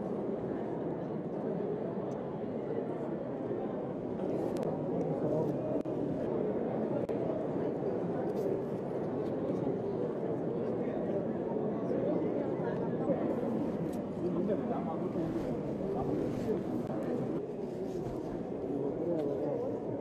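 A large crowd murmurs and chatters nearby.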